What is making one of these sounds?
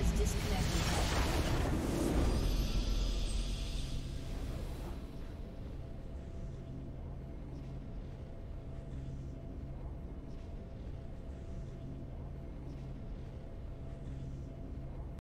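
Soft game music plays steadily.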